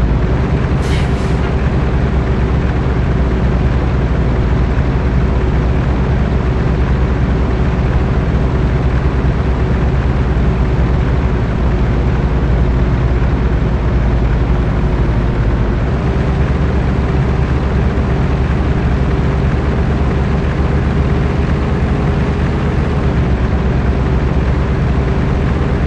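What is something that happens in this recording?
Tyres roll over a gravel road.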